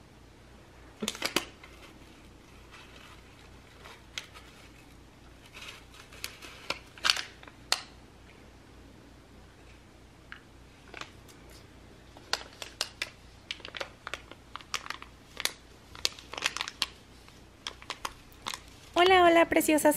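A paper tea wrapper crinkles and rustles in someone's hands.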